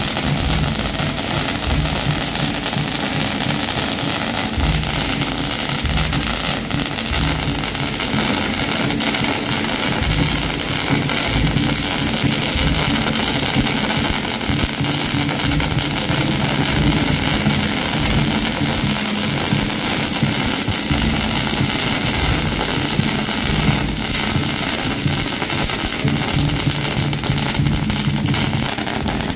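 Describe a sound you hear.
A firework fountain hisses and crackles close by.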